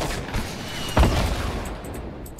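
A sniper rifle fires a loud shot in a video game.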